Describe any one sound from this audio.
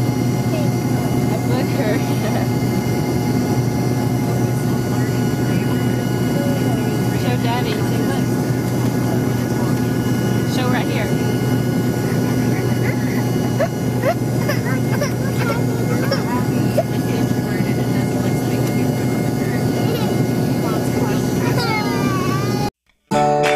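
A young boy babbles and makes small sounds close by.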